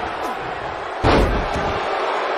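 A body slams onto a wrestling ring mat with a heavy thud.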